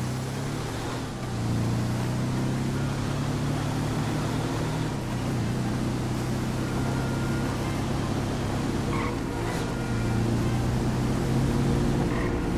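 A buggy engine drones steadily, rising and falling as it speeds along.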